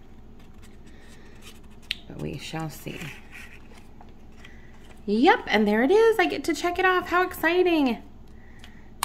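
A paper sheet crinkles softly in hands.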